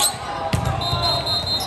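A volleyball is struck with a hard smack.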